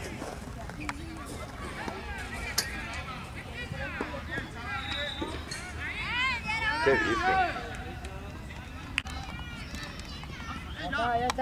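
Young players shout to each other outdoors across a sports field.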